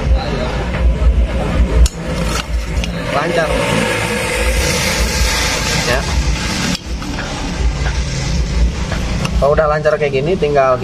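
A metal rod clinks and scrapes against a metal pipe.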